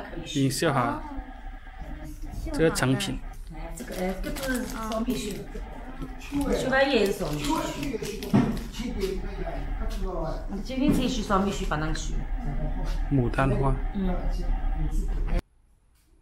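Plastic wrapping crinkles as hands handle it.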